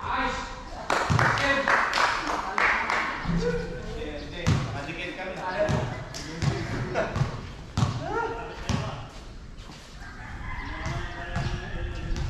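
A basketball bounces on a hard court.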